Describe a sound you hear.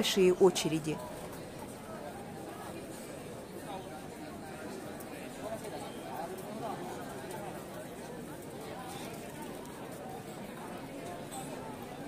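A crowd of people chatter outdoors in a lively murmur.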